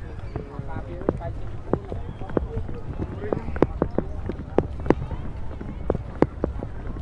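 A crowd chatters nearby outdoors.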